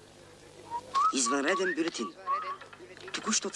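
A crowd of men and women talk nearby outdoors.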